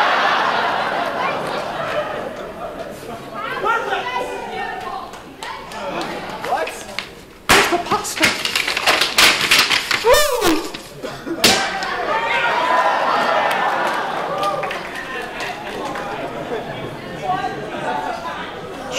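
A crowd chatters and murmurs.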